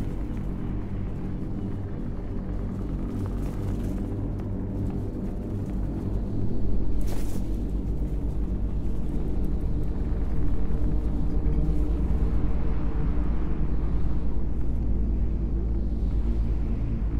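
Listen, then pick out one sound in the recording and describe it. A deep, steady engine drone hums.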